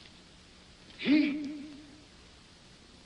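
A young woman groans.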